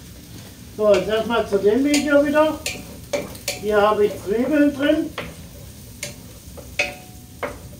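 A utensil clinks and scrapes against a pan.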